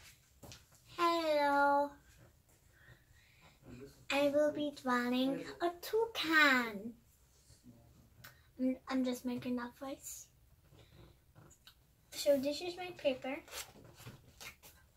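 A young girl speaks and sings with animation close by.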